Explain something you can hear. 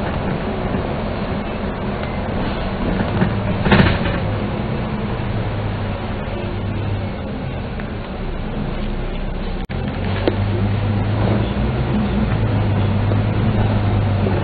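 A bus engine rumbles steadily as it drives along a road.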